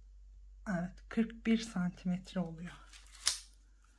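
A tape measure slides off crocheted fabric.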